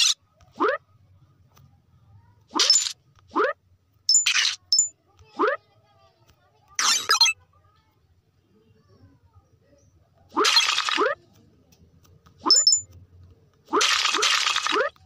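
A cartoon jump sound effect boings upward again and again.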